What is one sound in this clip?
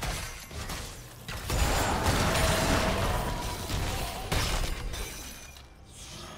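Magic spell effects whoosh and crackle in a fast fight.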